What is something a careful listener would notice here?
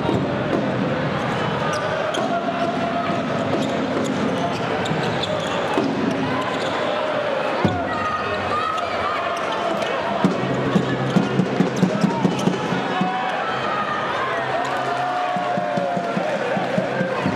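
A large crowd cheers and chants loudly in an echoing indoor arena.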